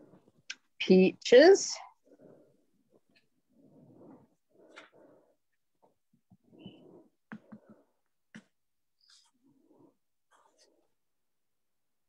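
Paper rustles softly as pieces are pressed onto a card.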